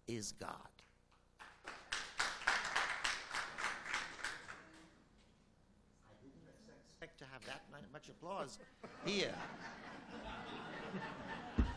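An elderly man speaks with animation into a microphone, heard through a loudspeaker in a large echoing hall.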